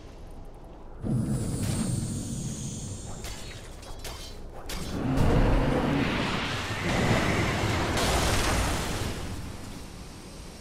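Magic spells whoosh and crash in a fantasy battle.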